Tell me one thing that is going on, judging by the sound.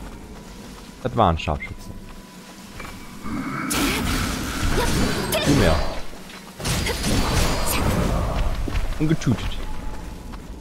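Blades swing and clash in a fierce fight.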